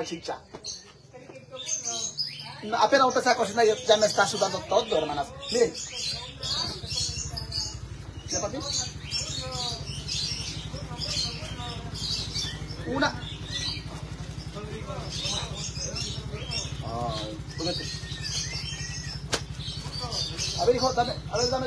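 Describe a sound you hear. A middle-aged woman talks with animation close by.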